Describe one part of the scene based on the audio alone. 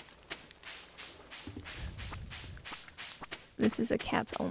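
Footsteps patter quickly and evenly on soft ground.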